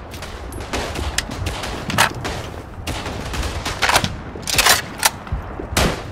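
A rifle's bolt and magazine clatter during reloading.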